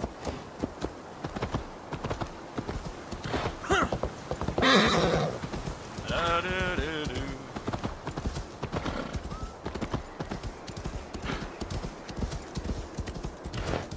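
Horse hooves crunch steadily on snow.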